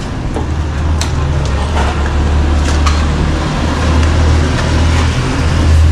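A trowel scrapes plaster on a wall.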